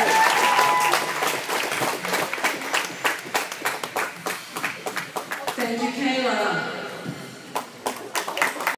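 Spectators clap and cheer in a large echoing hall.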